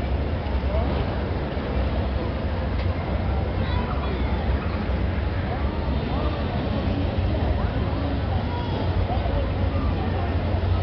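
A crowd murmurs with many distant voices in a wide open space.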